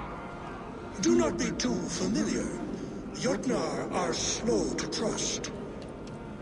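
An elderly man speaks in a deep, stern voice.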